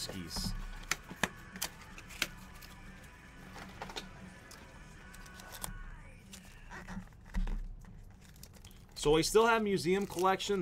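Trading card packs rustle and tap as hands sort through them.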